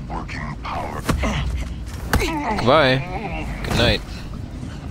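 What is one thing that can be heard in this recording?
Blows thud in a brief scuffle.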